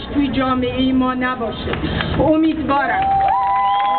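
A woman speaks loudly and with emphasis into a microphone, amplified through loudspeakers outdoors.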